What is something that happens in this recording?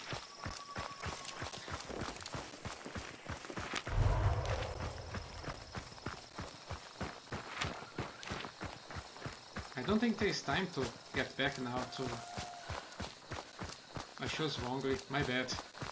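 Footsteps crunch steadily over dry grass and dirt.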